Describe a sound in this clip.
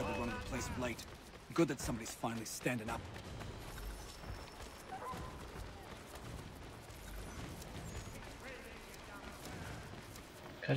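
Footsteps run quickly over stone.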